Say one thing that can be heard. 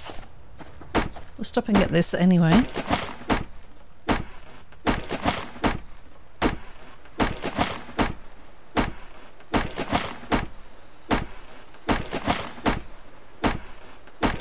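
An axe chops into a tree trunk with repeated dull thuds.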